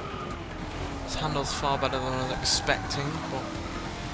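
Tyres screech as a car brakes into a corner.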